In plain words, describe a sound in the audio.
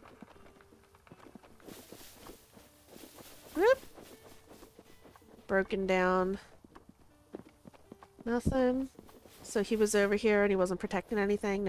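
Quick footsteps patter across grass.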